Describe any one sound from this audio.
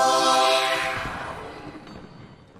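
A magic spell sounds with a bright shimmering chime that fades away.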